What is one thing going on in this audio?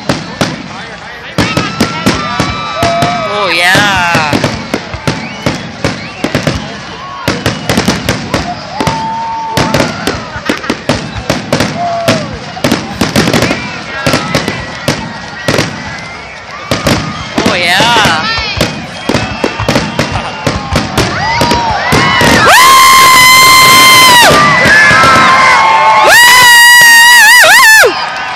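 Fireworks bang and crackle outdoors.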